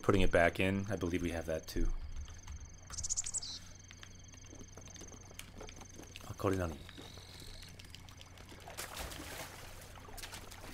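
Light footsteps patter on stone and grass.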